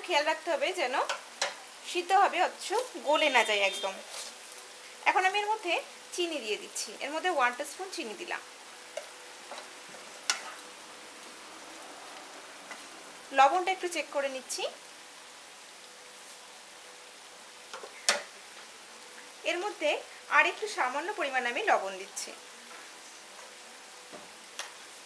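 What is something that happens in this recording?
Vegetables simmer and bubble gently in a pan.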